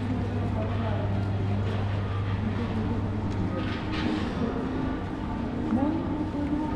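Distant voices murmur in a large echoing hall.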